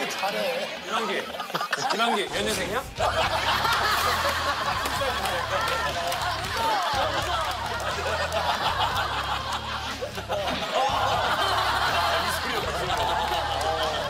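A group of men and women laugh loudly.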